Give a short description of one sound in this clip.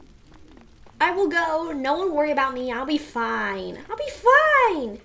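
A young woman speaks with animation close to a microphone.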